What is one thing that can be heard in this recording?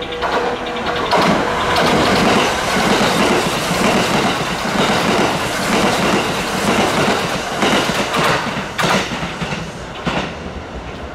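A train rushes past close by with a loud roar and rattling wheels.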